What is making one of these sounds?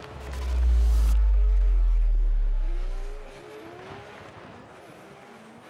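Car engines rev hard.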